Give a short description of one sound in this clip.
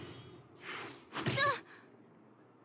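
A magic attack strikes with a sharp whoosh and thud.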